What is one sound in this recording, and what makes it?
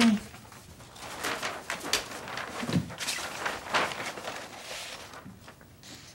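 A large sheet of paper rustles and crinkles.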